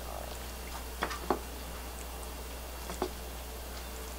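Soft food is set down on a ceramic plate with light taps.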